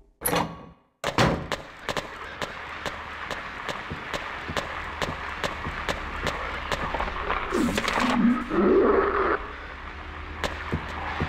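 Footsteps tap along a hallway.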